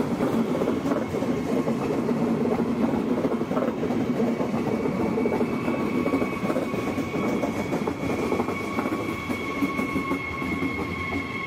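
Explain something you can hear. A train rumbles and clatters along the tracks as it pulls away.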